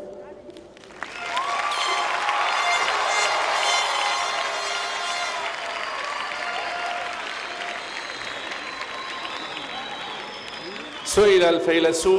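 A large crowd applauds loudly.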